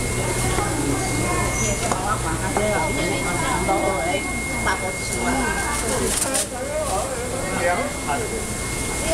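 Several adults chatter nearby.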